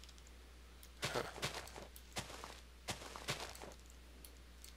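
Leaves rustle and crunch as they are broken.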